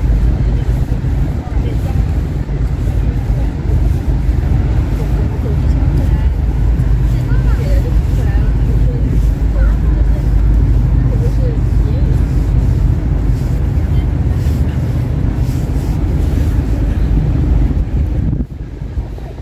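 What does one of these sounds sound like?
Wind rumbles loudly across the open riverside.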